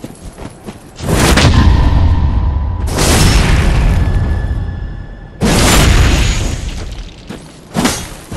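Heavy blows strike with loud booming crashes.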